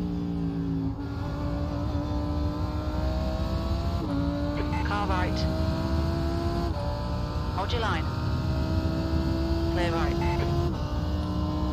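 A racing car engine drops in pitch with each gear change.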